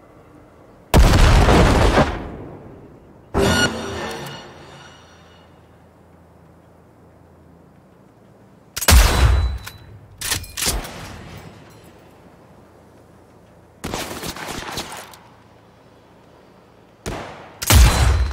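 A rifle fires loud booming shots that echo away.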